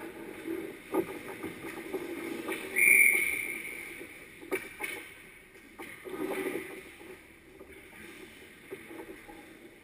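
Hockey sticks clack against the puck and ice in a large echoing rink.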